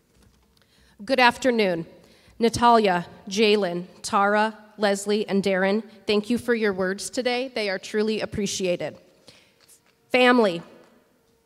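A woman speaks calmly into a microphone over a loudspeaker in a large echoing hall.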